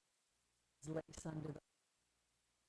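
A woman speaks calmly and briefly, close by.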